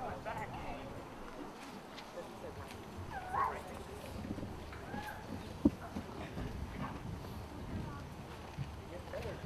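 A crowd of men and women murmurs and chatters at a distance outdoors.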